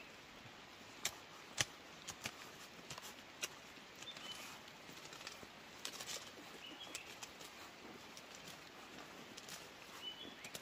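A hoe strikes and scrapes dry soil.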